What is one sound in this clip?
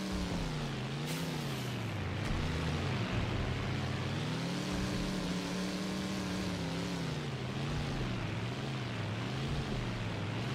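A car engine revs up and down steadily.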